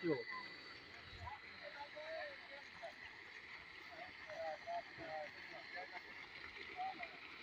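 Men talk quietly in the distance.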